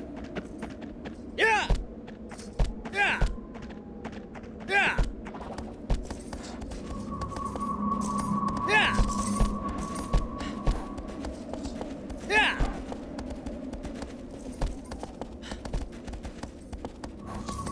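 A horse gallops, hooves thudding on the ground.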